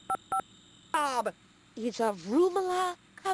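A young woman talks on the phone with animation.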